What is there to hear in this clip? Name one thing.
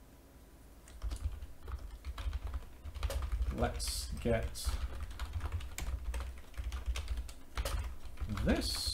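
Keys clatter quickly on a computer keyboard.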